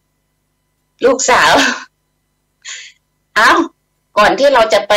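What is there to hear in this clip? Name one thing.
A middle-aged woman speaks warmly over an online call, in short bursts.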